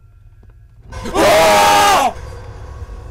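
Two young men scream loudly.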